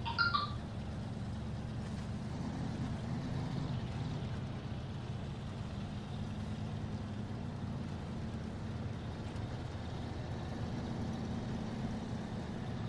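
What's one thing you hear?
A heavy truck engine rumbles steadily as it drives.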